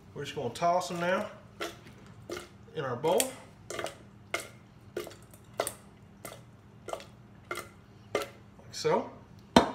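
Food is tossed around in a bowl with soft, repeated thumps.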